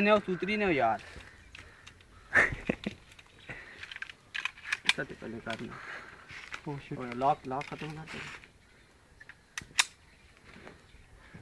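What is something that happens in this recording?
A pistol clicks metallically as it is handled.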